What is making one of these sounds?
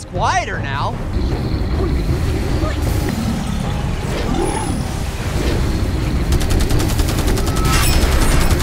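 Fire roars with a deep, steady rumble.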